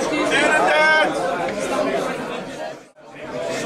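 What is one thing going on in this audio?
A middle-aged man sings loudly close by.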